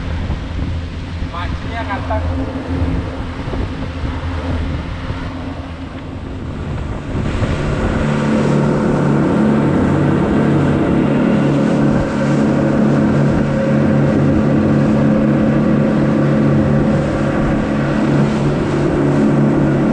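Outboard engines drone steadily, growing louder as the boat speeds up.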